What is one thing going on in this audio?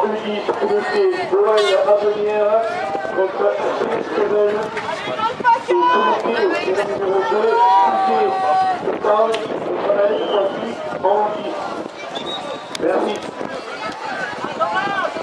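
Children shout and call out to each other outdoors.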